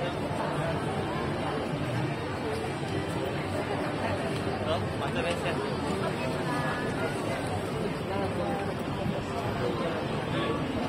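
A large crowd chatters outdoors all around.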